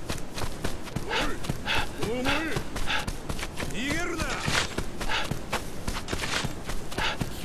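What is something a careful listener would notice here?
Quick footsteps run across packed dirt.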